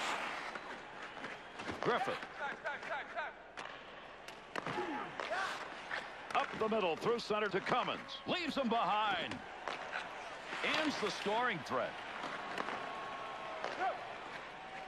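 Sticks click against a puck.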